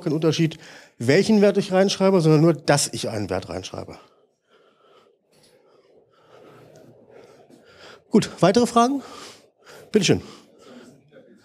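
A man lectures into a microphone in an echoing room, speaking with animation.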